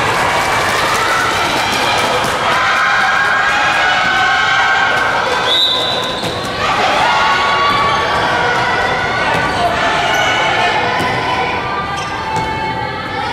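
A crowd of young spectators chatters and cheers in a large echoing hall.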